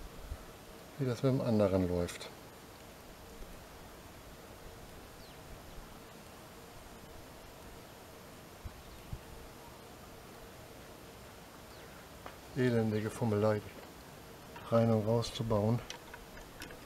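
A man speaks calmly in short bursts close by.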